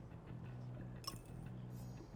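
A bright chime rings once.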